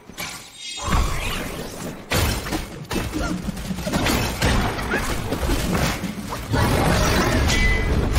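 A staff strikes with heavy thuds.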